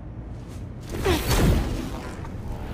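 A loud whoosh rushes past.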